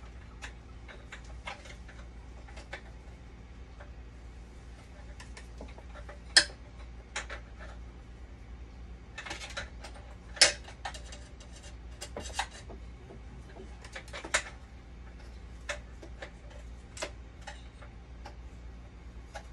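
Hands click and knock plastic fittings on a dialysis machine.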